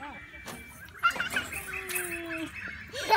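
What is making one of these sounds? A small child squeals and babbles with excitement.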